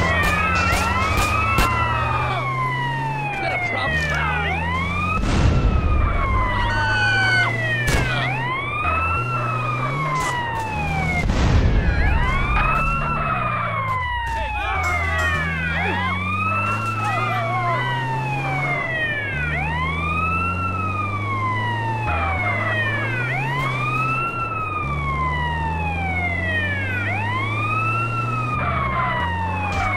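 An ambulance siren wails in rising and falling sweeps.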